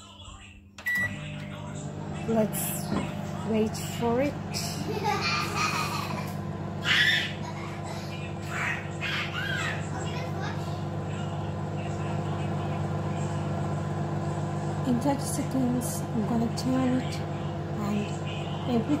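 A microwave oven hums steadily as it runs.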